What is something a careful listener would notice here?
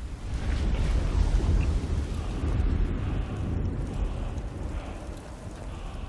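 A deep magical rumble roars loudly, then slowly fades.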